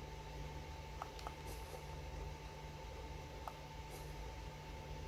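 Soft interface clicks sound as menu items are picked.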